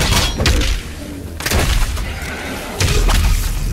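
A monster growls and snarls.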